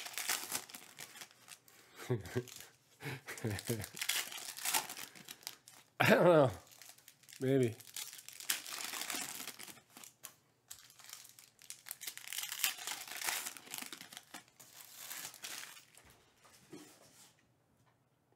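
Foil trading card packs crinkle as hands tear them open.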